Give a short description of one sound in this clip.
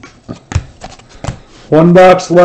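Trading cards rustle and tap as they are handled.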